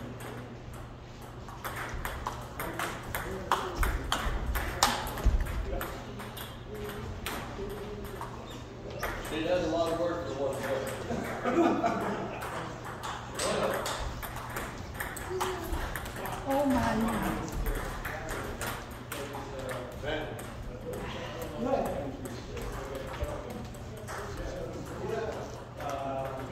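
A table tennis ball clicks quickly back and forth off paddles and a table in an echoing hall.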